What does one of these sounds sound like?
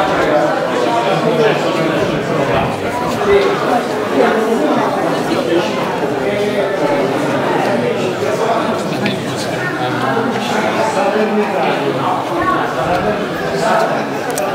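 A crowd of men and women chatter close by.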